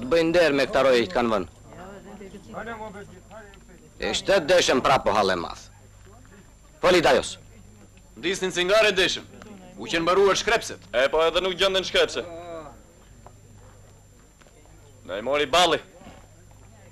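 Men talk outdoors in short, loud exchanges.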